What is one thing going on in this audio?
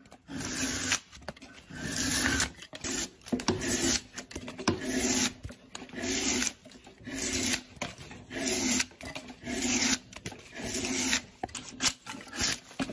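A hand plane shaves wood in repeated rasping strokes.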